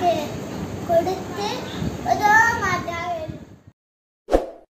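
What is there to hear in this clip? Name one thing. A young boy recites in a high, sing-song voice close to the microphone.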